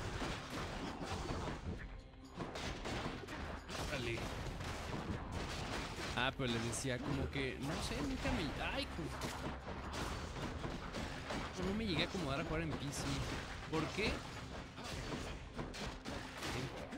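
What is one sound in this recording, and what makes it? Game attacks whoosh and crackle with magical blasts.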